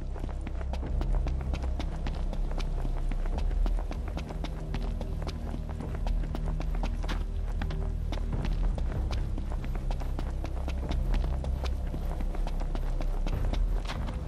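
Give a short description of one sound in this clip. Running footsteps crunch on a dirt path.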